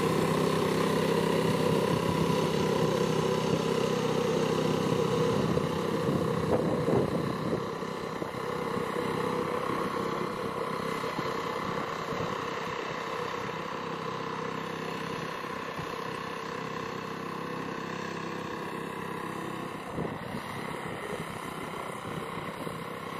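A small tiller engine chugs steadily, slowly fading as it moves away.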